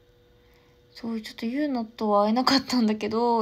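A young woman speaks close to the microphone.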